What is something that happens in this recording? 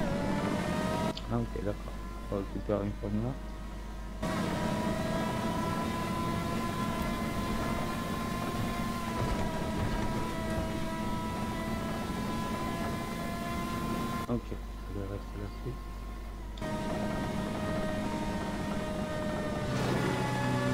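A race car engine whines steadily at high speed.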